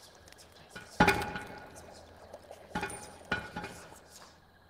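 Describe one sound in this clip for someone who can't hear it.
Wooden barrels knock and thud as they tumble against each other.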